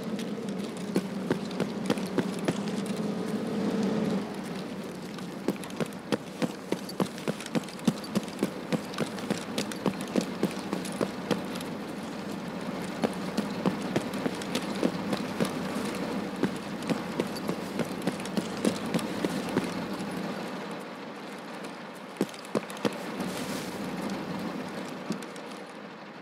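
Footsteps walk at a steady pace.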